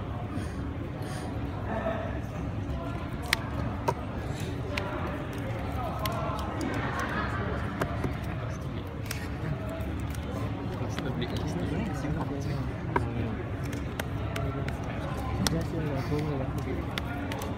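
Playing cards tap and slide on a tabletop.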